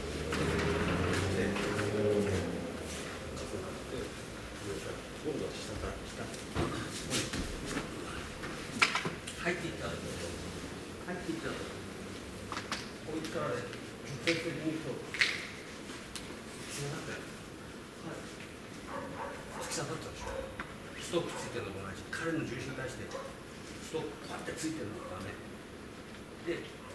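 Bare feet shuffle and slap on a padded mat.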